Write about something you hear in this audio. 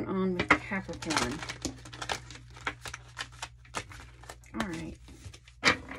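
Playing cards shuffle and slap softly on a table.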